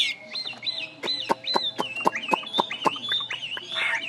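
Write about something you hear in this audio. A caged songbird gives a quick series of sharp chirps.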